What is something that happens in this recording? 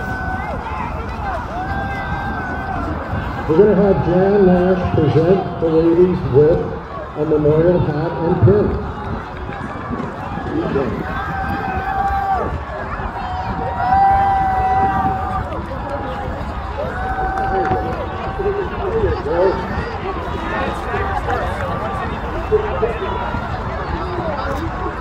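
Coxswains shout calls from distant rowing boats.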